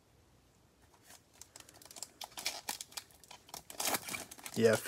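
A foil wrapper crinkles and tears as it is pulled open.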